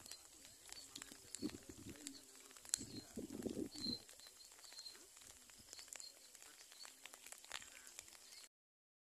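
Floodwater rushes and gurgles steadily.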